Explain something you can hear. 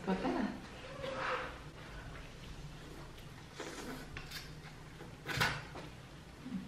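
A young woman slurps noodles.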